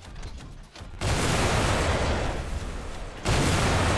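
Guns fire in a loud, continuous roaring burst.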